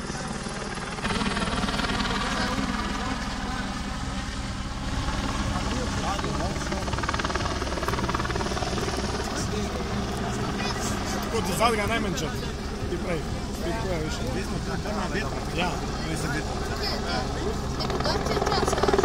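Men and women chatter nearby in lively voices.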